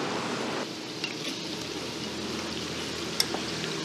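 Metal tongs click against a pan.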